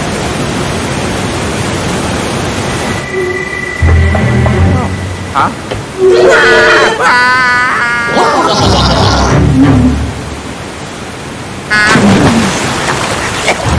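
Water rushes and splashes.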